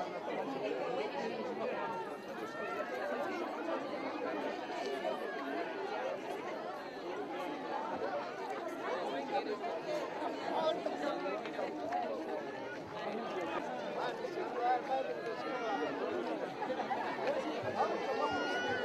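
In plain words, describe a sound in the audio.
A crowd of men and women chatters loudly nearby.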